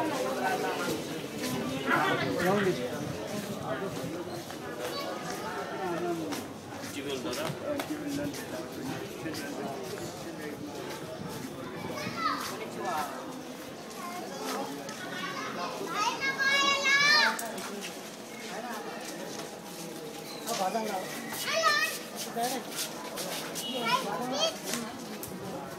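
Several men talk casually nearby outdoors.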